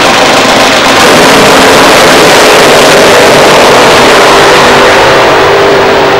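A nitro-fuelled dragster engine roars at full throttle down the track.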